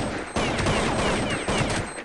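A rifle fires a burst of loud shots.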